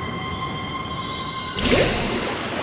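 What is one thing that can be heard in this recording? A magic spell hums with a shimmering, ringing tone.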